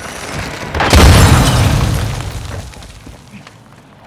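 An explosion booms nearby and rumbles away.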